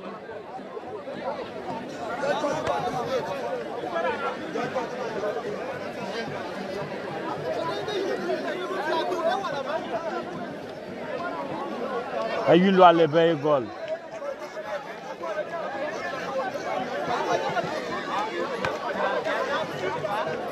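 A large outdoor crowd chatters and calls out in the distance.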